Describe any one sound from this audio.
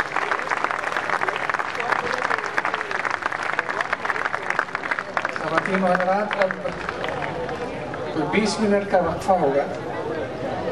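A harmonium plays a steady melody.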